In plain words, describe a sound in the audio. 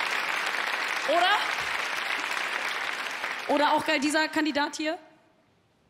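A young woman speaks animatedly through a microphone.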